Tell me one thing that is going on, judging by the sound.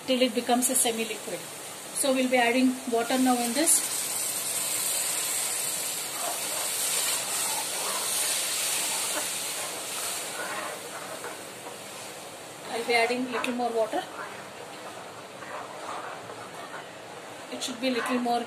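A metal spoon scrapes and stirs in a pan.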